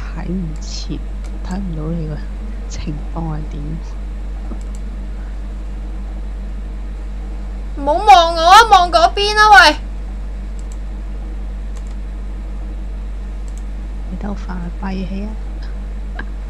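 A young woman talks quietly into a microphone, close by.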